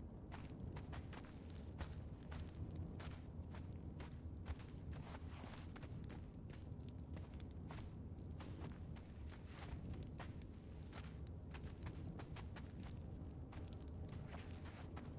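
Footsteps fall on a stone floor.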